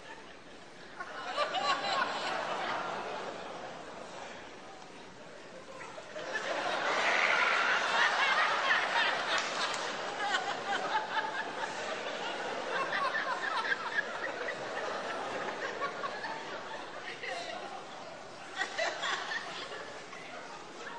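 A young woman talks with animation into a microphone, heard over loudspeakers in a large hall.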